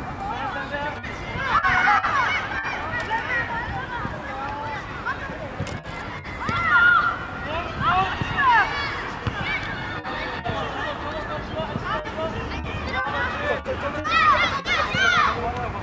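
Young boys shout and call out across an open field.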